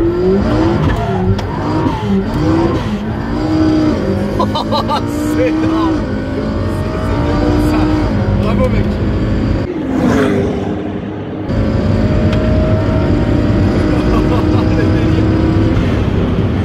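A sports car engine roars and revs up and down as it accelerates.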